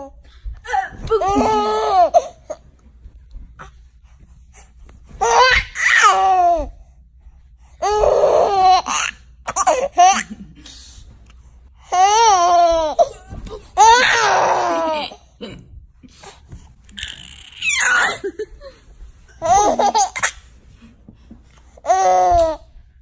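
A baby giggles and squeals with delight close by.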